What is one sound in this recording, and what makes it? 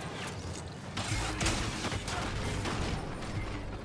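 Blaster shots fire and explode nearby.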